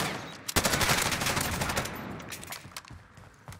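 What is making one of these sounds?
A gun fires a rapid, loud burst of shots.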